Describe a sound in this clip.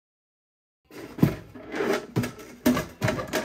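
A plastic container lid clicks open.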